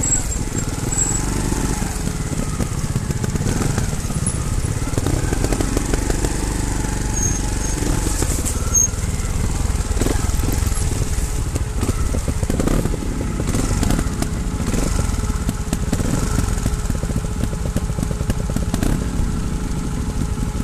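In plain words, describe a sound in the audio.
Tyres crunch over a rough dirt trail.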